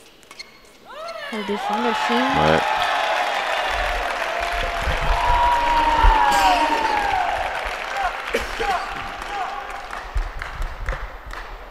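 A large crowd cheers and applauds loudly in an echoing hall.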